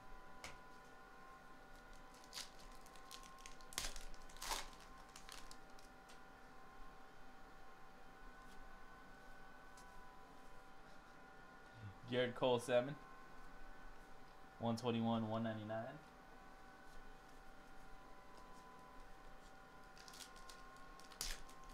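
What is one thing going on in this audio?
A foil pack crinkles as hands handle it.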